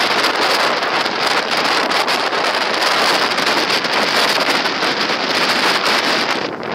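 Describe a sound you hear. Wind rushes loudly past a moving car.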